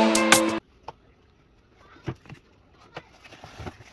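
A cardboard egg carton opens with a soft creak.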